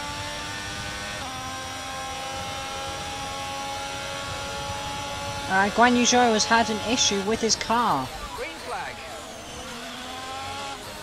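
A racing car engine whines at high revs and drops in pitch as the car slows.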